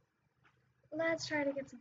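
A young boy speaks with animation close to a microphone.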